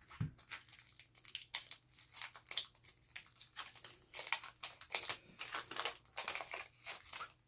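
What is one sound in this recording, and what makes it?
Trading cards rustle and flick as hands shuffle through them.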